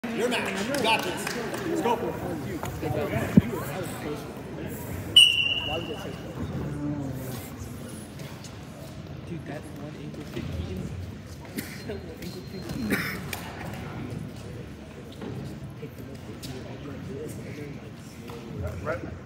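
Wrestlers' shoes squeak and thump on a mat.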